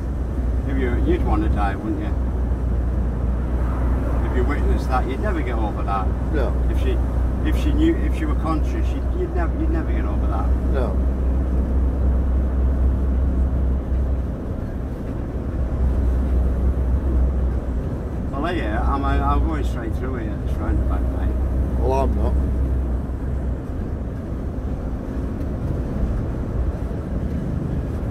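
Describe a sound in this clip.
A lorry engine rumbles steadily from inside the cab.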